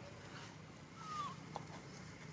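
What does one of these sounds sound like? A baby monkey gives a short, high squeak.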